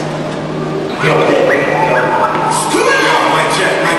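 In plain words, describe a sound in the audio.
Two men speak loudly in a large echoing hall.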